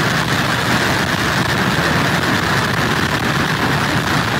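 Wind blows hard and gusts outdoors.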